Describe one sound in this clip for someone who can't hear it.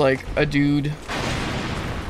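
A sword clangs against metal armour with a sharp ring.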